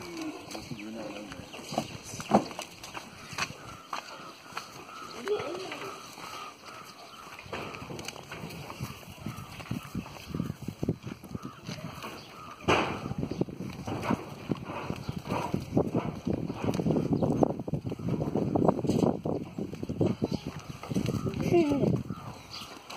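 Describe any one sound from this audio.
Goats bleat now and then nearby.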